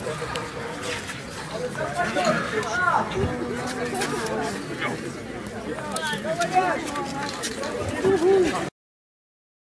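A crowd of young men and women talk and call out loudly outdoors.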